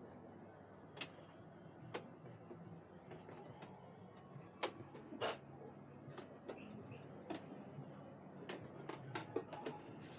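Footsteps thud down wooden stairs.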